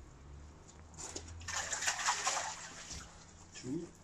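Water splashes as a net is lifted out of a pond.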